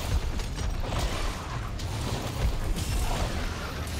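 Flames burst with a loud roar.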